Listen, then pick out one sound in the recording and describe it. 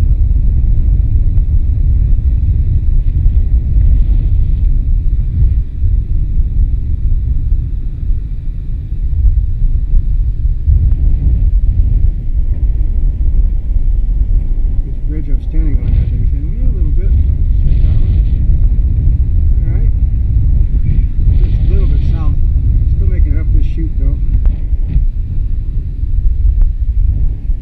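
Strong wind buffets loudly throughout, outdoors.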